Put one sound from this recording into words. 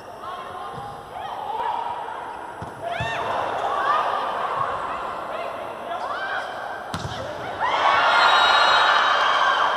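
A volleyball is struck hard during a rally.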